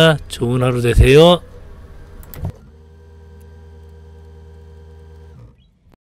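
A forklift engine idles with a steady low hum.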